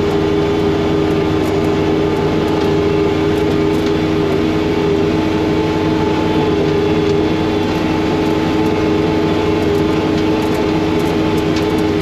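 Snow sprays and hisses from a snowblower chute.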